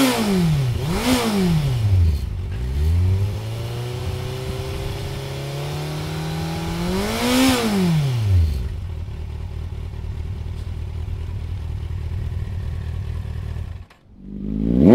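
A motorcycle engine idles and is revved in short bursts.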